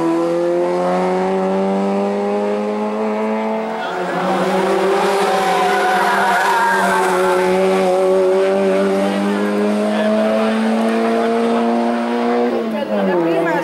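A rally car engine revs hard and roars past close by.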